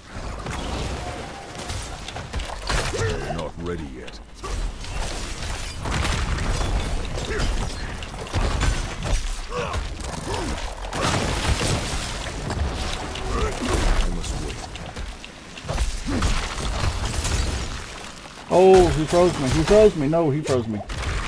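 Magic spells whoosh and burst.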